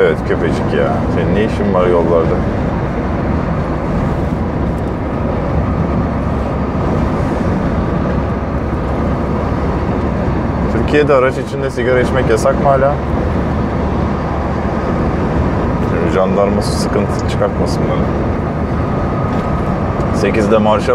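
A truck engine hums steadily while driving on a road.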